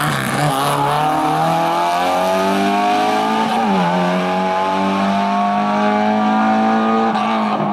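A race car engine revs hard close by, rising in pitch and dropping sharply at a gear change.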